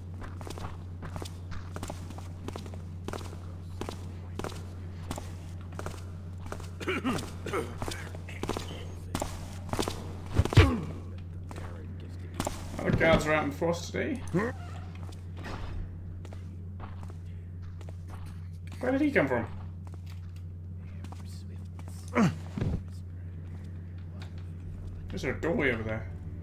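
Footsteps tap steadily on cobblestones.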